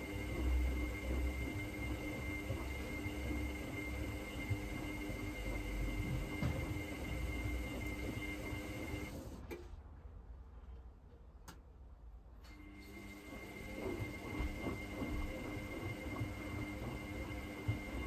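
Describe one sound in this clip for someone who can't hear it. A washing machine drum turns, sloshing soapy water.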